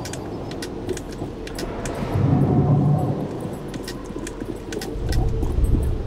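Footsteps crunch quickly over snow and stone.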